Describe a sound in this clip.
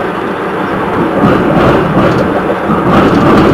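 Tram wheels squeal and clatter over rail joints.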